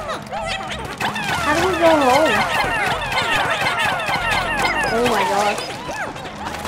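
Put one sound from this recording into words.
Rapid rising whistling sweeps sound as small game creatures are thrown at a wall.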